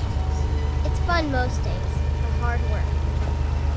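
A young girl speaks calmly, close by.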